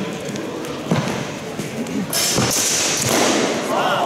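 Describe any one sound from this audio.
Steel longswords clash in a large echoing hall.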